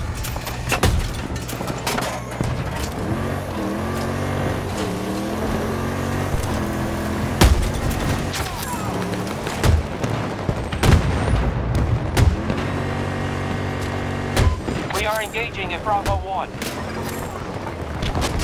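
A vehicle engine rumbles and revs.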